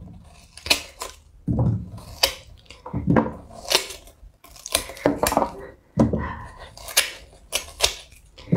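Crisp watermelon rind snaps and crunches as it is peeled by hand.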